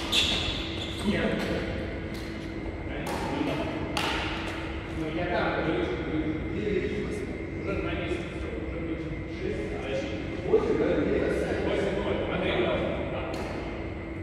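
Young men and women talk to one another across a court.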